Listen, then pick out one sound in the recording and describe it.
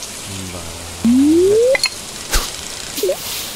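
A fishing line swishes out in a quick cast.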